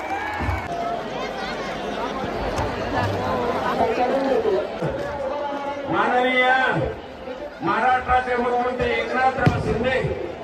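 A large crowd chants and sings loudly outdoors.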